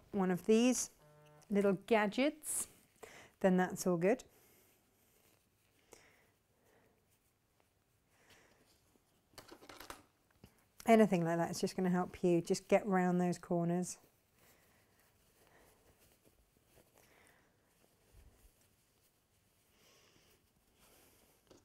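Fabric rustles softly as hands fold and turn it.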